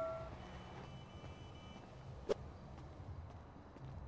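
Footsteps walk on hard ground.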